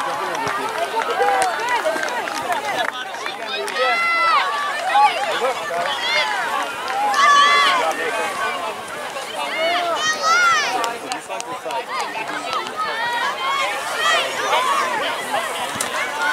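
Many people shout and cheer outdoors.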